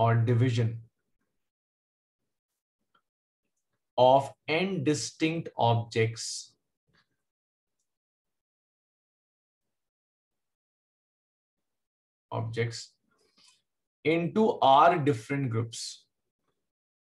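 A man speaks calmly into a close microphone, explaining in short phrases with pauses.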